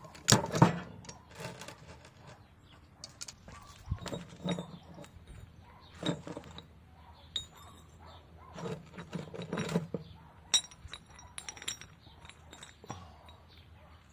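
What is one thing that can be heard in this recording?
Metal pieces clink and rattle as they are handled.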